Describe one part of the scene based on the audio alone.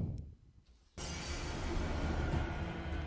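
A fiery spell crackles and roars.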